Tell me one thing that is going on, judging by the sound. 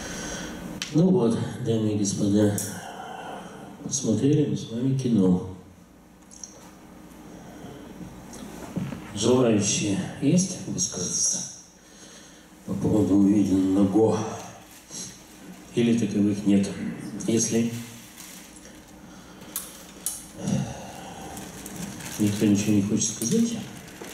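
A man speaks in short bursts with pauses, heard in a room with some echo.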